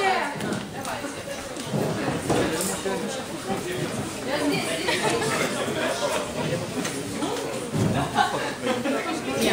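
A crowd of young people chatters and talks over one another indoors.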